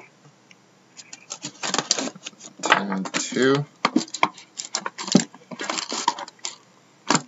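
Plastic wrap crinkles and tears as a box is opened.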